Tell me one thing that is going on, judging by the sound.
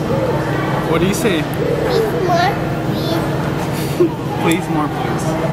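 A toddler girl babbles.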